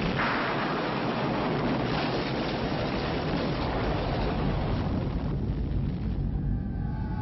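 Explosions boom and rumble across water.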